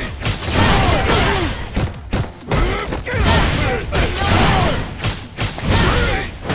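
Heavy punches land with loud, sharp thuds.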